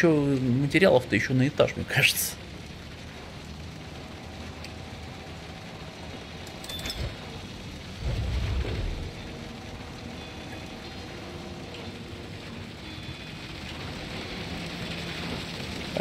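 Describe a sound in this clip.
A crane engine hums steadily.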